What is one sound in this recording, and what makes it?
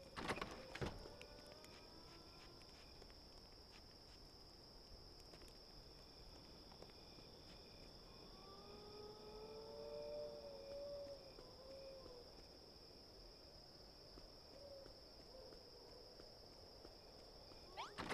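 Footsteps tread steadily over hard ground.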